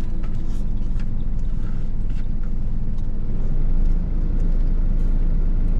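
A man chews food.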